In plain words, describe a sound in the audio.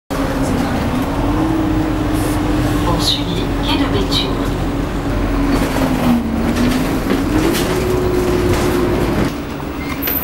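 A bus engine hums steadily from inside, rising and falling slightly in pitch.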